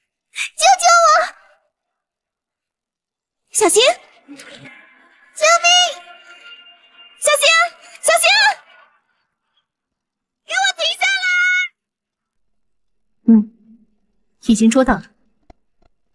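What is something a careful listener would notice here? A young woman speaks with animation and shouts close to the microphone.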